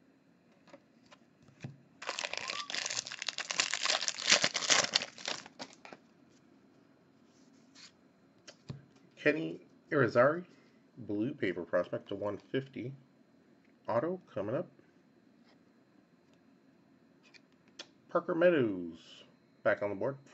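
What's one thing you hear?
Trading cards flick and slide against each other.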